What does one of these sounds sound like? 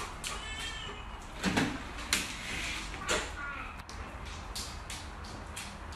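A dog's claws click on a tiled floor.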